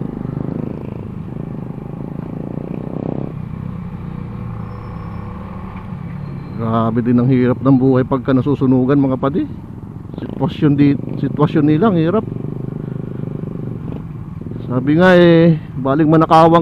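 A scooter engine hums while cruising along a street.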